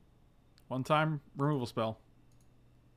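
A man speaks briefly and casually into a microphone.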